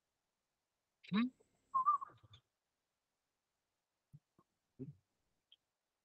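A man speaks a few short words over an online call.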